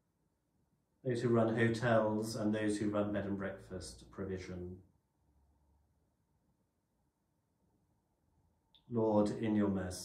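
A man speaks calmly and slowly into a microphone, with pauses.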